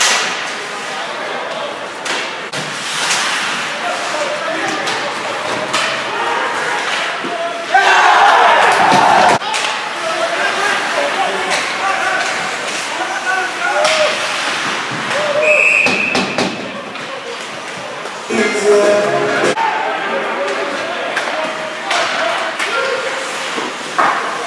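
A crowd of spectators cheers and shouts in a large echoing rink.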